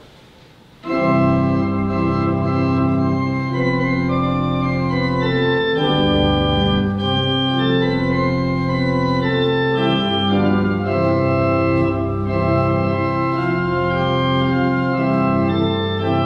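An organ plays sustained chords.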